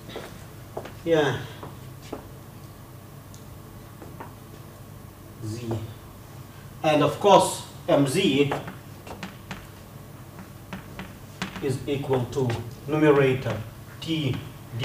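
A man lectures calmly, heard through a microphone in an echoing room.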